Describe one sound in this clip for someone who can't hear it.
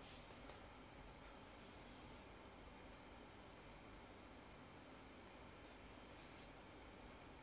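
A fingertip taps softly on a glass touchscreen.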